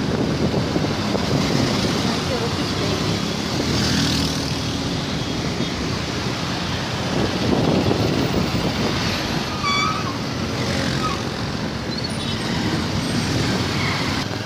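Motorbikes and traffic hum and rumble steadily along a busy road outdoors.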